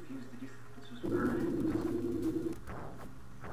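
A loud, rumbling magic blast roars and then cuts off.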